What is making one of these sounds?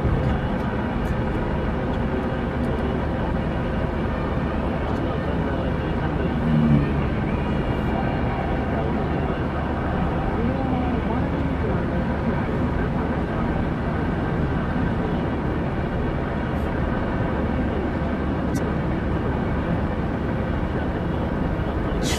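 Tyres roll on the road with a steady rush.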